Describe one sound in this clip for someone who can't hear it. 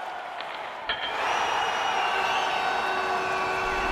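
A crowd cheers and roars.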